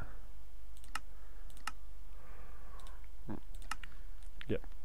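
Sharp interface clicks tick as menu pages change.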